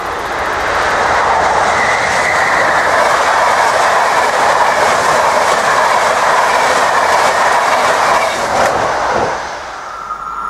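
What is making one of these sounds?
A train rushes past close by with a loud rushing roar.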